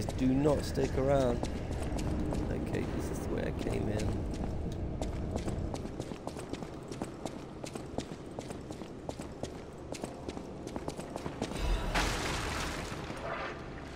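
Footsteps tread on stone stairs and floors.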